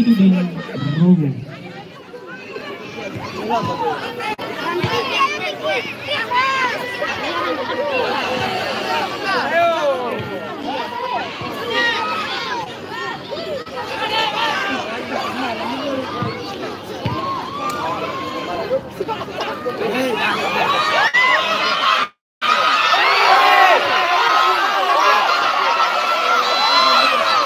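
A large crowd of spectators cheers and shouts loudly outdoors.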